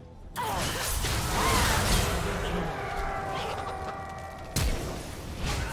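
Blows and blasts thud in a game fight.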